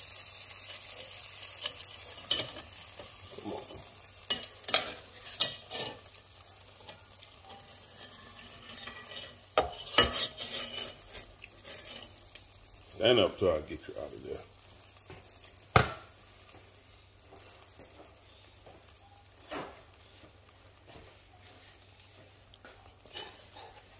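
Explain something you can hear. Thick sauce squelches as it is stirred.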